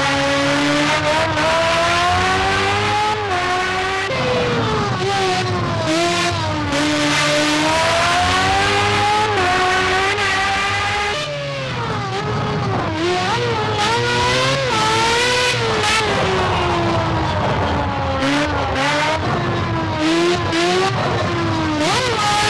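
A racing video game's open-wheel formula car engine screams at high revs, rising and dropping as it shifts through gears.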